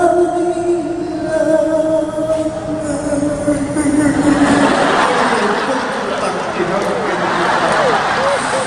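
Guitars play along with a singer.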